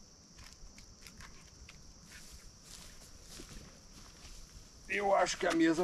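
Footsteps crunch on dry pine needles.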